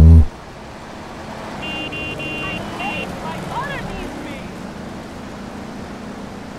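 A car engine hums as a car drives past closely.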